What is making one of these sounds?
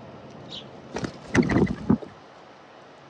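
A dove flaps its wings loudly as it takes off close by.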